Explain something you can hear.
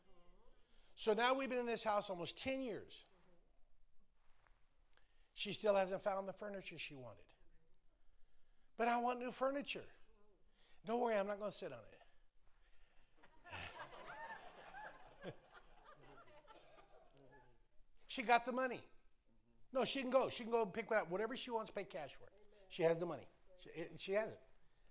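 An elderly man speaks with animation in short bursts, heard through a microphone in an echoing hall.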